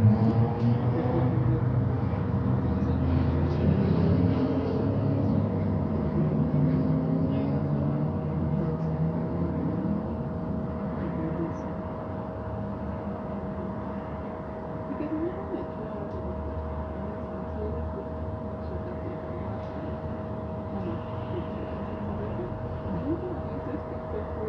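A bus engine hums and rumbles steadily from inside the bus.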